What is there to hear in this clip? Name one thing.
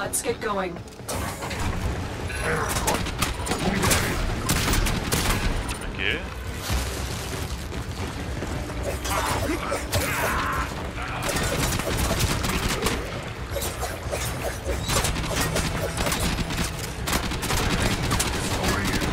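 Blades swish and clang in a close fight.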